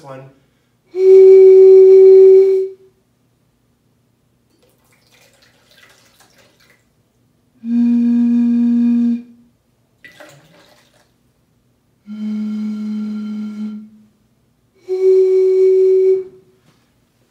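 A man blows across a bottle, making long, steady hooting notes.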